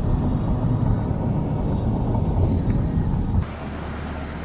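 Wind rushes loudly past an open car window.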